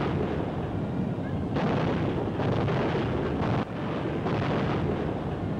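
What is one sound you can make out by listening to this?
Tank engines rumble loudly.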